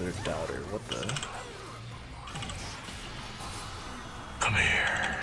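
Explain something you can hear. Fantasy game spell effects whoosh and crackle in quick bursts.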